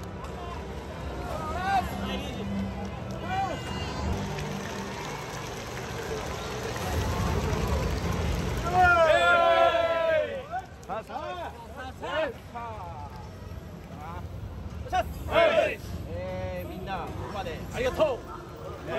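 A crowd murmurs in a large stadium.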